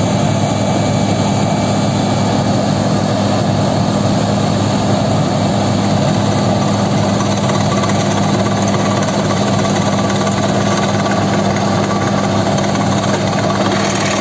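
A drilling rig's engine roars loudly and steadily.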